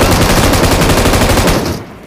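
A vehicle explodes with a deep boom.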